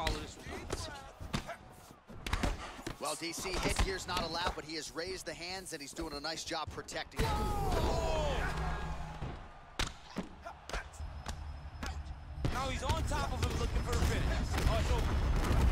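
Punches land with hard, heavy thuds.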